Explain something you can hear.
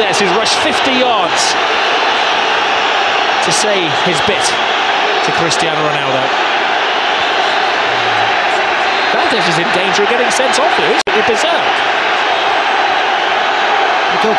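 A stadium crowd whistles shrilly.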